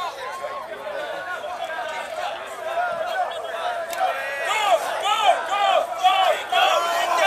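A crowd of young men and women chatters and calls out loudly outdoors.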